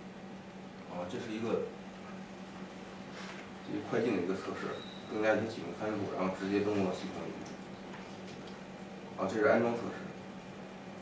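A young man speaks briefly into a microphone in a large room.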